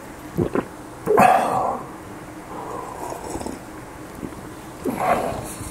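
A man sips and slurps a drink from a mug.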